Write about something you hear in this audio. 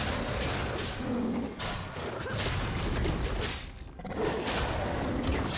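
A video game battle crackles with magic spell blasts and clashing hits.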